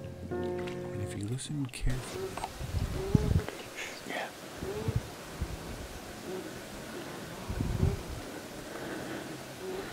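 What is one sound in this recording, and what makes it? Water ripples and splashes softly as a beaver swims.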